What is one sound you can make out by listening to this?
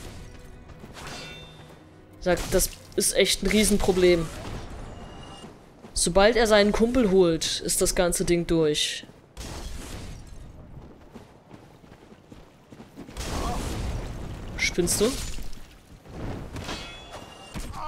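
Swords clash and strike with metallic clangs.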